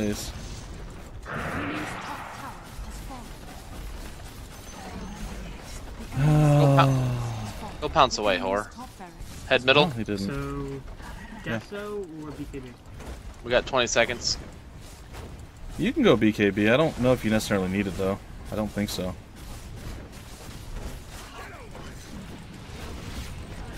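Fantasy battle sound effects of spells and blows crackle and clash.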